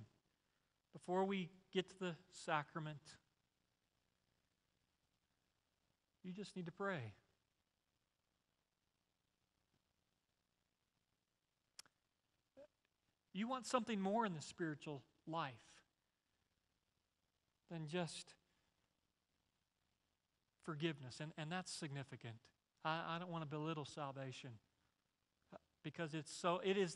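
A man speaks calmly through a microphone, pausing often between phrases.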